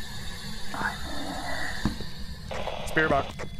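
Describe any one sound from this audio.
A handheld radio hisses with crackling static.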